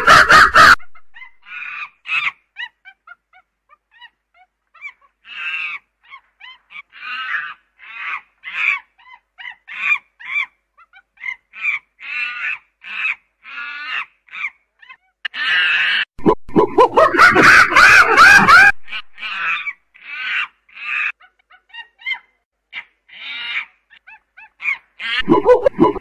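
A chimpanzee hoots and screams in rapid bursts, building to loud shrieks.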